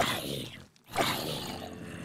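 A sword swooshes and strikes a zombie.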